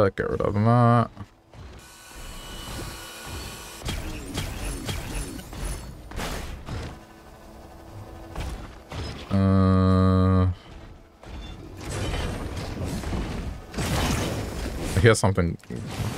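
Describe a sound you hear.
Electronic game sound effects chime and buzz.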